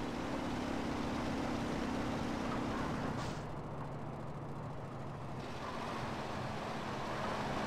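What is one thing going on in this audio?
A truck engine rumbles steadily as it drives along.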